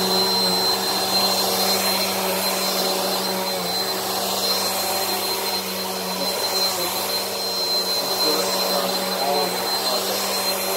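A vacuum cleaner motor whines steadily up close.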